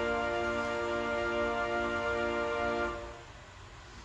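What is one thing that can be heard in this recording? An organ plays a sustained chord that rings through a large echoing hall.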